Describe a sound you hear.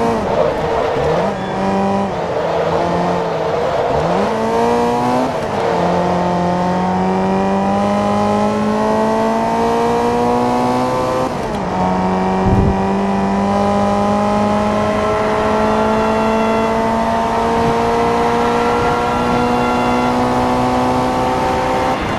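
A racing car engine roars, revving up through the gears and dropping at each shift.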